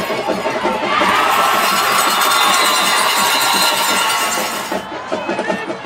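A crowd cheers loudly in an outdoor stadium.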